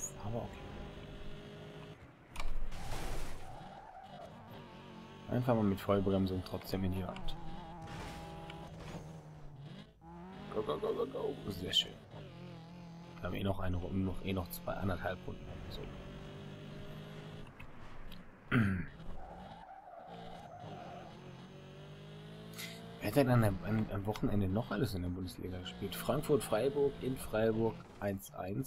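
A racing car engine roars and revs up and down.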